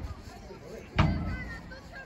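A padel racket strikes a ball with a sharp pop.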